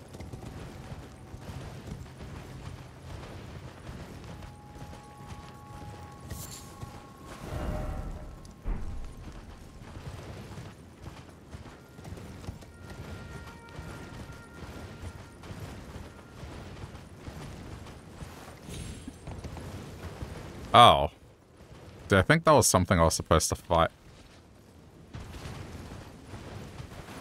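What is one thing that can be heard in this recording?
A horse gallops with rapid hoofbeats on soft ground.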